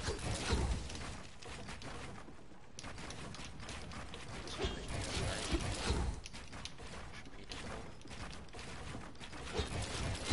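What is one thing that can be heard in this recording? Rapid building pieces snap into place with sharp clacks.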